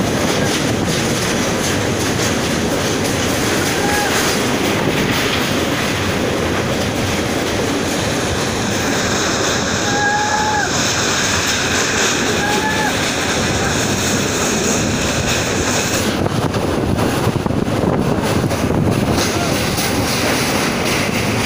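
Wind rushes past loudly outdoors.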